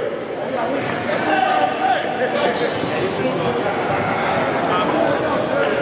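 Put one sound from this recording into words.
A basketball bounces on a hard floor.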